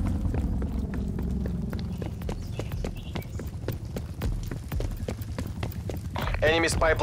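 Footsteps run on paving.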